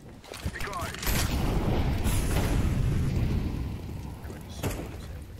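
A fire grenade bursts into roaring, crackling flames.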